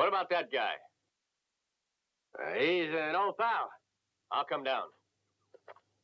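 A middle-aged man speaks calmly and close by.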